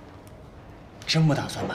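A young man speaks sharply, close by.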